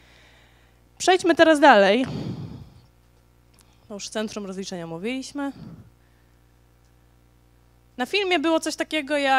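A young woman speaks with animation into a microphone over loudspeakers in a large echoing hall.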